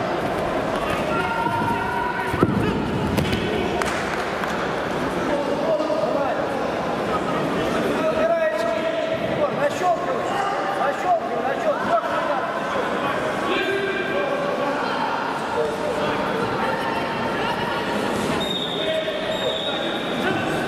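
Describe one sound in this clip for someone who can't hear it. Gloved punches thump against a fighter.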